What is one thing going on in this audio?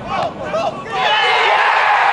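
A crowd cheers loudly outdoors.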